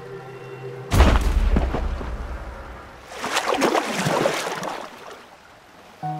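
A whale splashes loudly back into the water.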